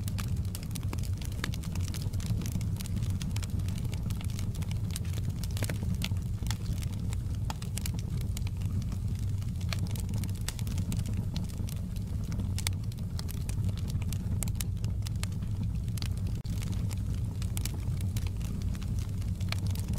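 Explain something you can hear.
A wood fire roars steadily.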